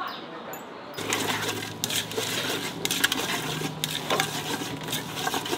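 A spoon scrapes and stirs food in a metal pot.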